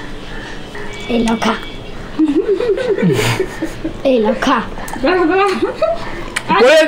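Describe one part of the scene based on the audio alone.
A young girl talks cheerfully nearby.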